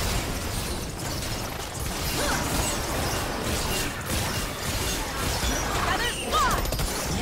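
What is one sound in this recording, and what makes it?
Video game combat sound effects clash and burst.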